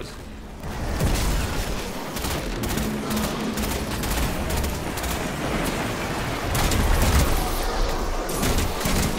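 Gunfire bursts and blasts ring out repeatedly.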